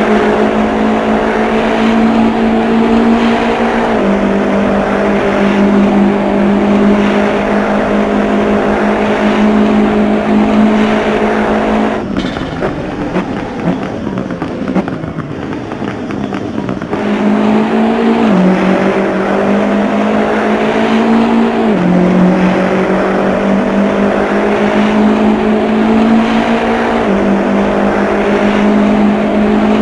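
A racing car engine roars at high speed, quieting for a few seconds before roaring back up.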